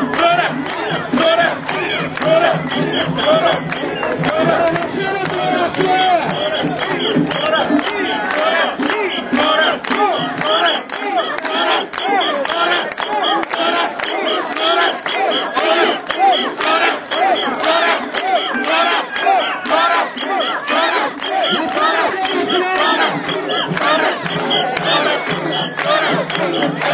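A large crowd of men and women chant and shout in rhythm close by.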